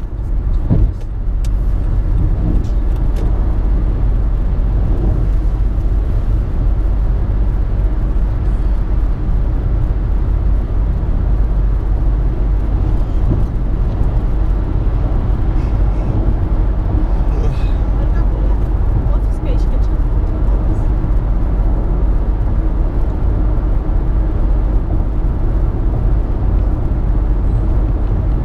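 A car's engine and tyres rumble steadily on a highway, heard from inside the car.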